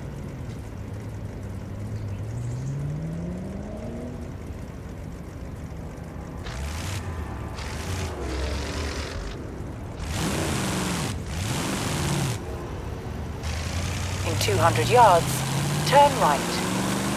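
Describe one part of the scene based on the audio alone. A car engine revs up and down, rising in pitch as it accelerates.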